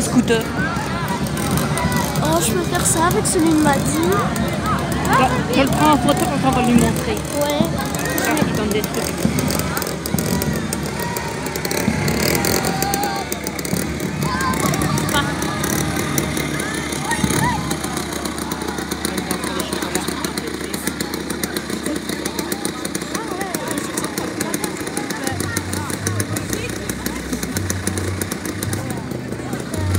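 A crowd chatters outdoors at night.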